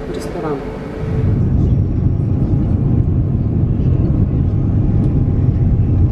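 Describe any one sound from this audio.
An airplane engine drones low and steady.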